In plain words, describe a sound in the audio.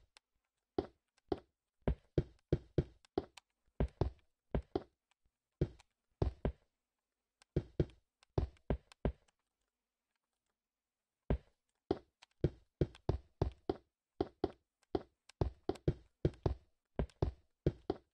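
Stone blocks are placed one after another with short, dull thuds.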